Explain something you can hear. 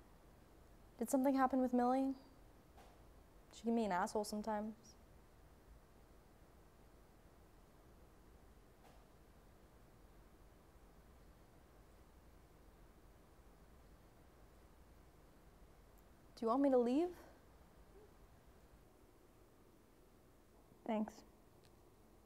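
A young woman speaks quietly in short phrases, close by.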